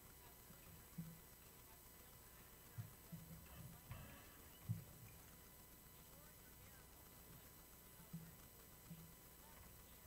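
Dishes clink softly on a table.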